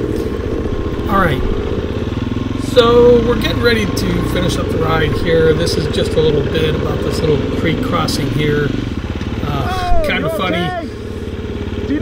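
Another dirt bike engine revs up and down nearby.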